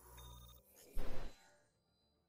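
A short electronic alert chime sounds once.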